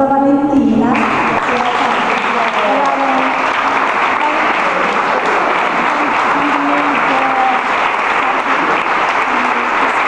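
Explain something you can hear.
A crowd applauds and cheers in an echoing hall.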